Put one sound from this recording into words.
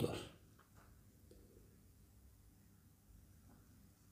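An older man sips and slurps wine.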